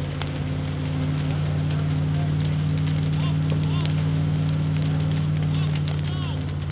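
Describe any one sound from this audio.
A fire hose sprays water with a rushing hiss.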